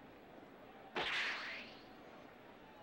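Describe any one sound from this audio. A loud whoosh rushes past and fades.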